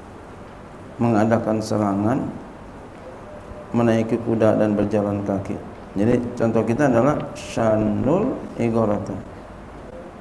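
A middle-aged man speaks slowly into a microphone in an echoing room, with pauses.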